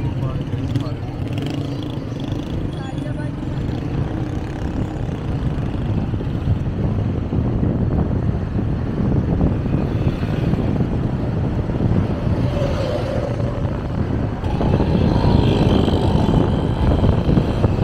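Traffic passes on a town street outdoors.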